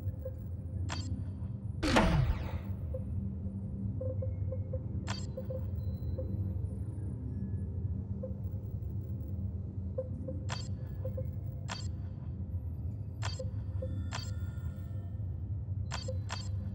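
Short interface clicks sound now and then.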